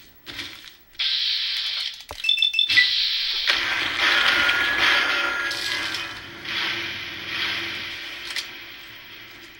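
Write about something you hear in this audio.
A heavy gun fires in a loud, roaring burst.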